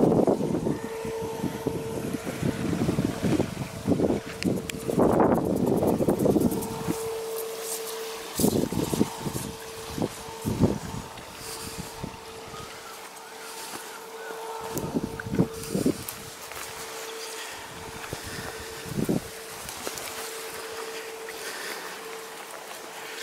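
Dry reeds rustle in the wind.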